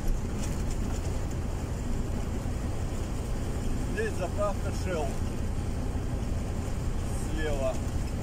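Tyres hum steadily on the road surface.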